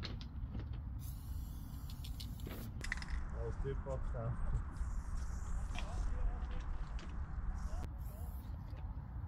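A spray can hisses in short and long bursts.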